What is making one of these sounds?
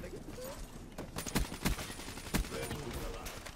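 Gunfire bursts in loud, sharp shots.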